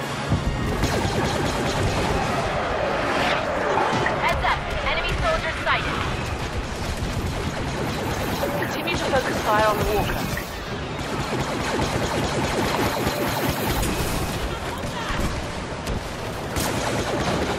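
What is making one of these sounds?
Blaster rifles fire in rapid bursts.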